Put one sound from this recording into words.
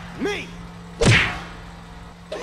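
A car crashes into a metal trailer with a loud bang.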